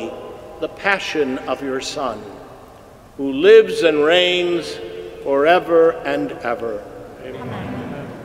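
An elderly man chants in a singing voice through a microphone, echoing in a large hall.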